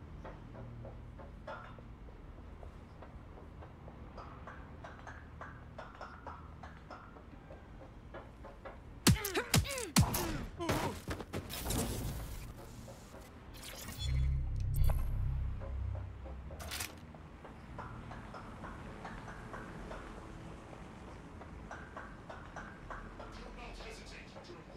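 Footsteps hurry across a metal floor.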